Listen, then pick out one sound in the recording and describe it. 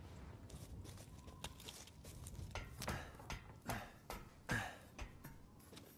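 Boots thud on the rungs of a wooden ladder, one rung after another.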